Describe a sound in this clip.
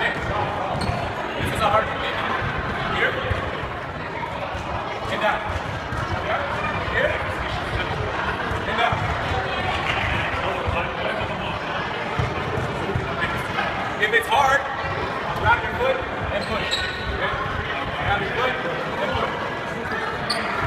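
A man calls out instructions loudly, echoing in a large hall.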